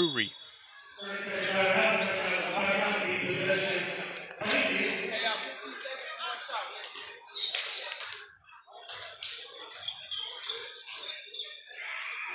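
A crowd cheers and chatters in an echoing gym.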